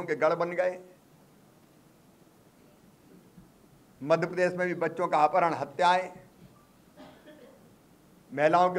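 A middle-aged man speaks with animation into microphones, pausing between phrases.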